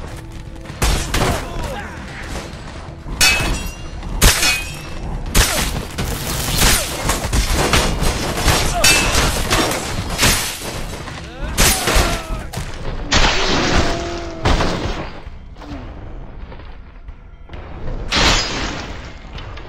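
Blades clash and slash into flesh with sharp, wet impacts.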